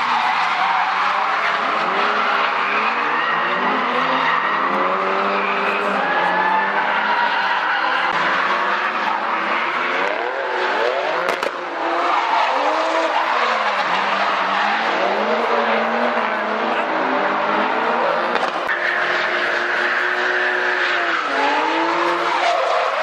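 Car engines roar and rev hard.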